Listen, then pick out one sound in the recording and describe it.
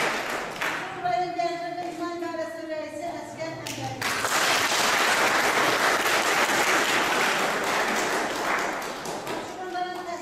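A woman reads out aloud in an echoing hall.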